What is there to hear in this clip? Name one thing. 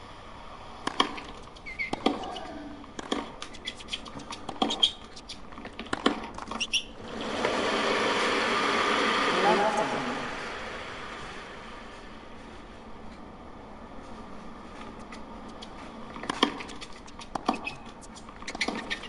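A tennis ball is struck with sharp thwacks back and forth.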